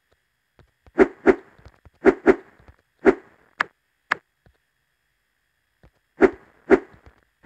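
A game character's jumps make short bouncy sound effects.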